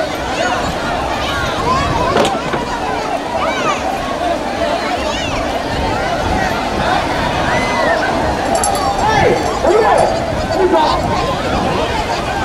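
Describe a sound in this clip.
A large crowd of men and children shouts and cheers loudly outdoors.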